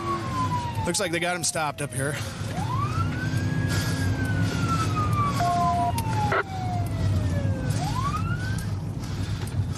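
A siren wails with rising and falling sweeps.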